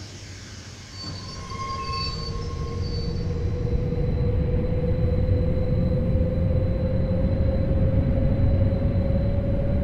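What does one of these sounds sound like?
An electric train motor hums and rises in pitch as the train pulls away.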